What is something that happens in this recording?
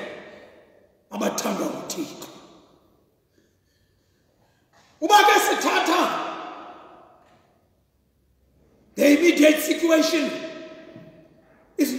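A man preaches with animation into a microphone, in bursts that echo through a large hall.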